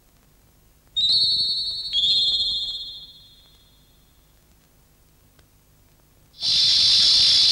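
A sword rings out with a bright, shimmering metallic tone.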